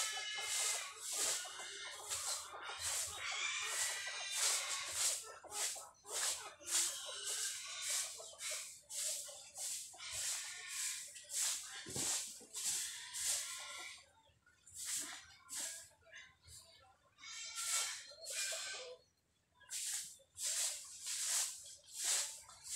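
A broom sweeps dry leaves and dirt in quick, repeated swishes.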